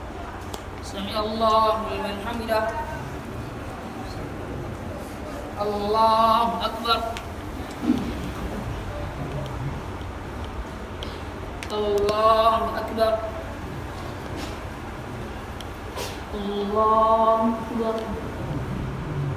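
A young man chants short calls through a loudspeaker in a large echoing hall.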